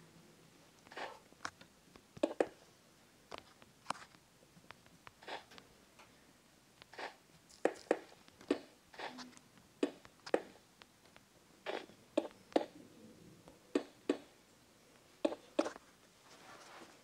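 Stone blocks knock and crunch in short, repeated bursts.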